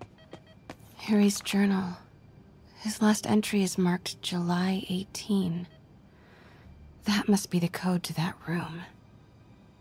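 A young woman speaks calmly and thoughtfully, close by.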